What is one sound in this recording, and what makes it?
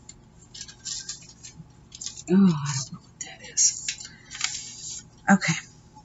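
Paper cutouts rustle and crinkle as they are handled.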